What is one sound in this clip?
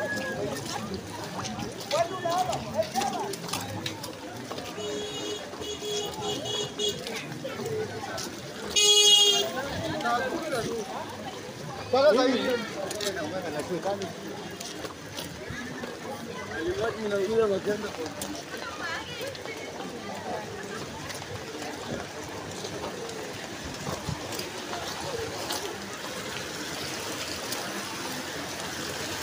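People talk at a distance outdoors.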